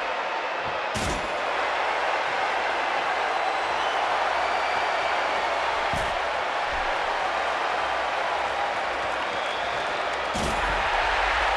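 Blows land with dull thuds as two wrestlers fight.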